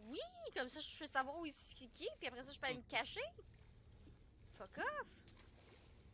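A young woman talks with animation into a close microphone.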